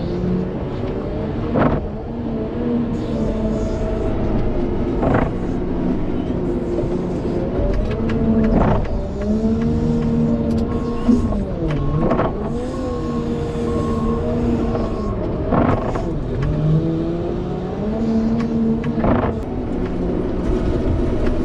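A loader's diesel engine rumbles and revs up and down.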